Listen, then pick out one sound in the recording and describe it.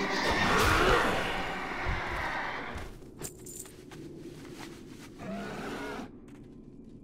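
A man talks with animation into a microphone, close by.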